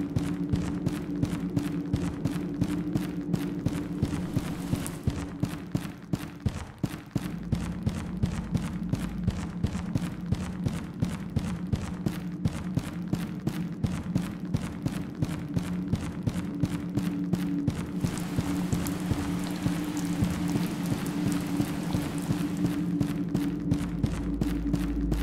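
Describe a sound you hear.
Quick footsteps run steadily over a stone floor.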